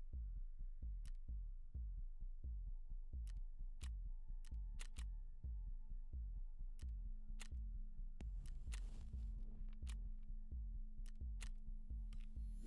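Short, sharp interface clicks sound several times.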